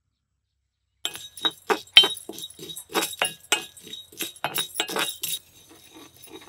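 A wooden spoon scrapes and rattles seeds in a metal pan.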